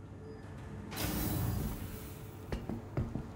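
Heavy metal elevator doors slide open with a loud whoosh.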